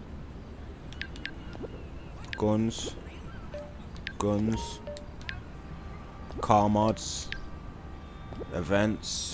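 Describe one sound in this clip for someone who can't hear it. A phone menu clicks and beeps softly.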